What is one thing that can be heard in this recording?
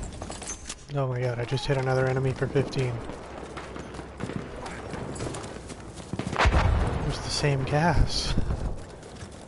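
A young man talks with animation through a close microphone.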